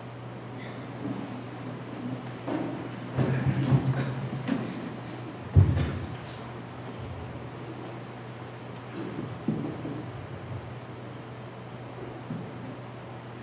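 A man speaks into a microphone, heard through loudspeakers in an echoing room.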